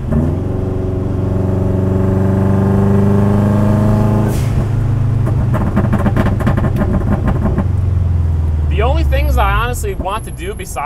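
A car engine revs loudly, rising in pitch and then shifting gears.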